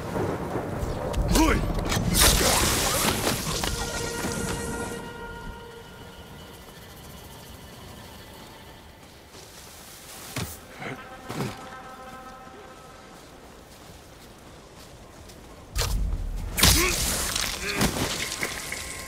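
A sword slashes into a body with a heavy thud.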